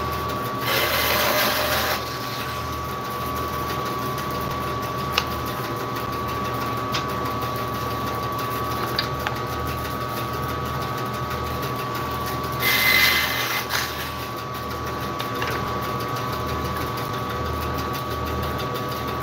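A band saw hums steadily.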